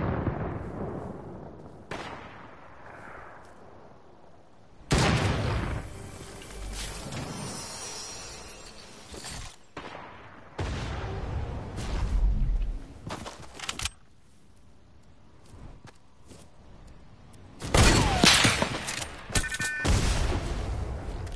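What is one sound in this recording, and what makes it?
Footsteps patter quickly on hard ground and sand.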